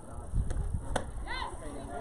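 A softball bat strikes a ball with a sharp crack.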